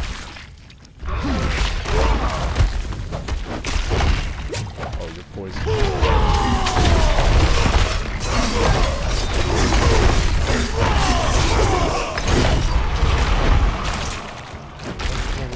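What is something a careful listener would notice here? Heavy blows and magical blasts crash and rumble during a fight.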